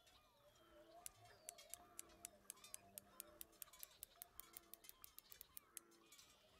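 A fishing reel clicks steadily as it is cranked.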